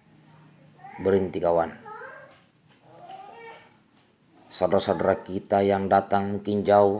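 A middle-aged man speaks calmly and close up, with pauses.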